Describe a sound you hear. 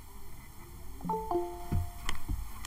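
A soft electronic chime sounds once.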